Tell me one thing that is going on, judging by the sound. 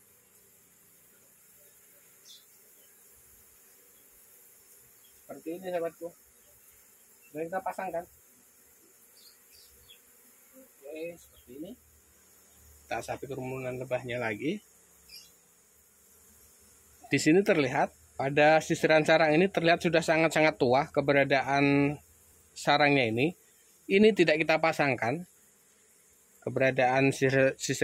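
Asian honeybees buzz around a comb.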